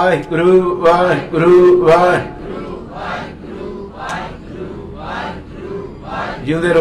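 A middle-aged man sings loudly into a microphone, heard through a loudspeaker.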